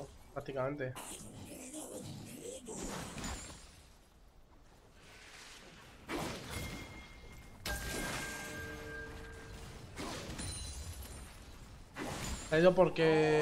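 Video game spell and combat effects clash and zap.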